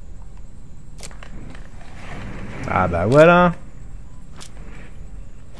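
A pistol clicks as it is handled.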